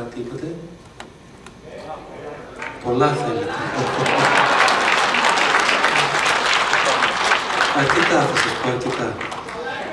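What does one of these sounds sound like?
A man speaks into a microphone, amplified in a hall.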